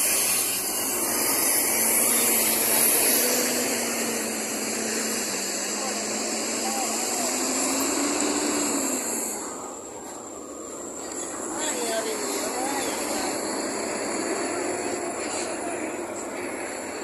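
Large bus engines rumble as buses drive past close by, one after another.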